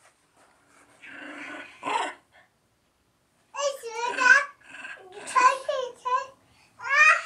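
A young girl talks and squeals excitedly close by.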